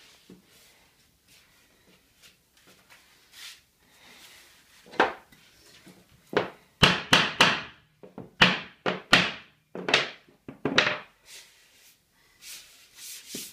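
Hands rub and shuffle across a wooden floor.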